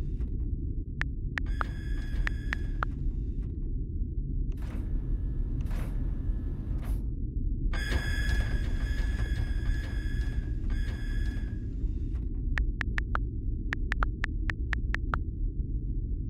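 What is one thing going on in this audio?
Phone keyboard clicks tap quickly as letters are typed.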